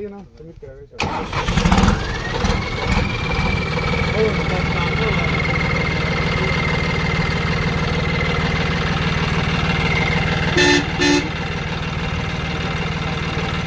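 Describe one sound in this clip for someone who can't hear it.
A tractor engine runs loudly with a steady high whine.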